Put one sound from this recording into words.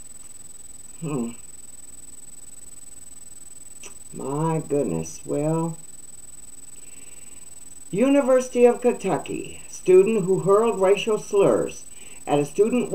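An elderly woman speaks calmly and close, with pauses, through a microphone.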